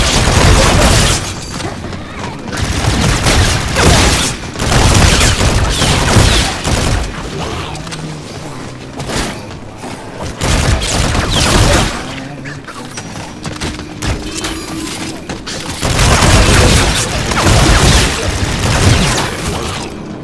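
Gunfire bursts out in loud, rapid volleys.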